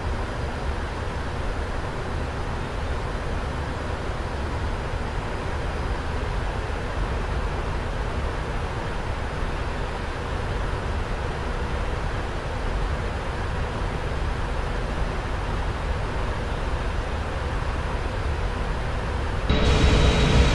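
Jet engines drone steadily, muffled as if heard from inside a cockpit.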